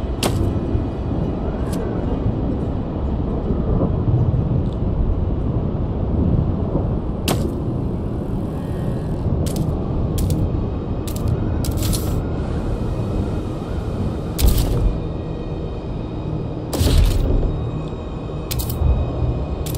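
Short interface clicks sound now and then.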